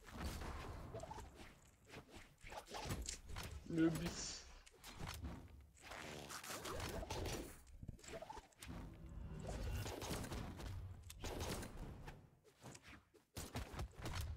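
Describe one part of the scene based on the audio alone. Cartoon fighters' blows land with quick thuds and whooshes.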